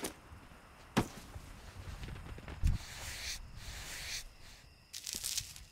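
Weapon blows land with sharp, short thuds.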